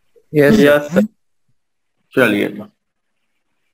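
A man speaks loudly in short phrases, close by.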